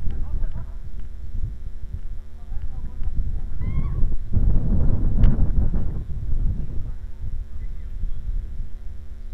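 Young men shout to each other in the distance.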